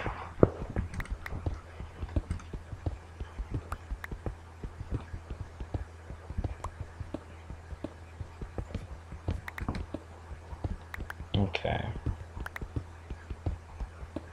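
A pickaxe taps and chips at stone in quick, repeated knocks.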